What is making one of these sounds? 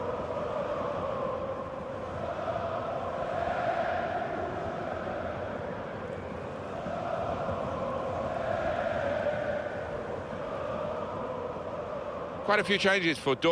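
A large stadium crowd sings and chants together.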